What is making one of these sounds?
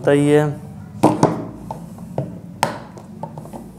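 Plastic parts click and tap as they are handled.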